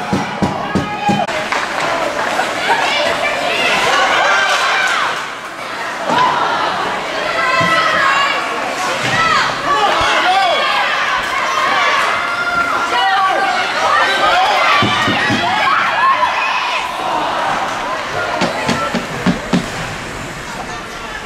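A crowd of spectators cheers and shouts in a large echoing rink.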